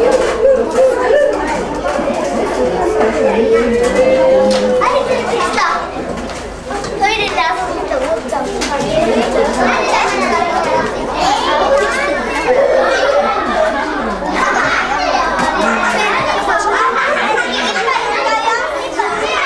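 Many young children chatter and call out at once close by.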